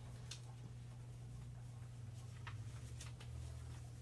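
Paper rustles as a sheet is handled.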